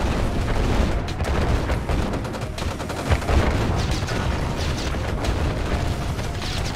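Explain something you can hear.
Gunfire crackles and explosions boom in a battle.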